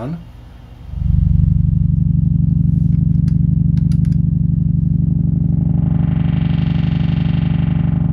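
A low electronic buzz drones steadily.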